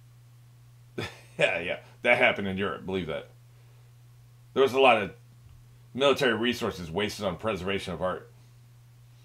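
An older man speaks with animation close to a microphone.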